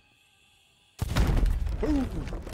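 A gunshot blasts once with a loud explosion.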